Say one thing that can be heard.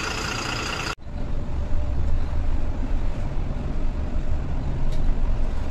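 A bus engine rumbles low and steady while driving along a road.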